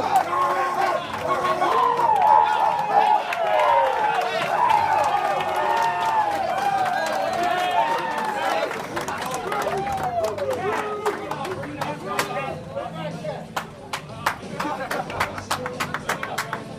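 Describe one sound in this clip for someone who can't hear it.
Hands slap together in high fives over and over.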